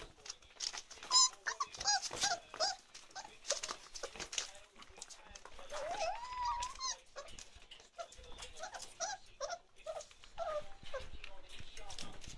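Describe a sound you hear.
Puppies whine and yelp in high, squeaky cries.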